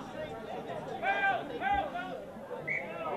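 Young male players shout loudly during a tackle.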